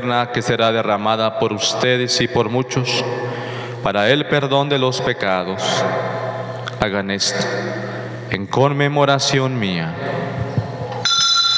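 A man chants solemnly into a microphone.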